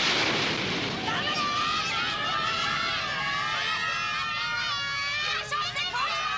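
A crowd of children cheers and shouts excitedly.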